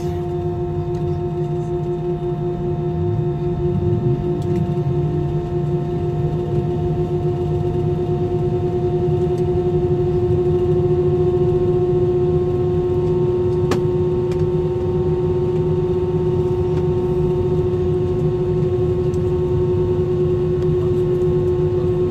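A jet engine hums and whines steadily from inside an aircraft cabin.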